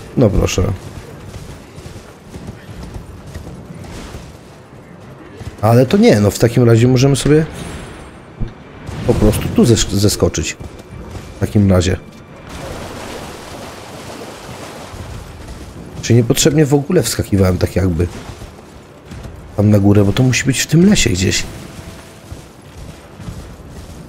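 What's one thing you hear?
A horse's hooves gallop steadily over ground.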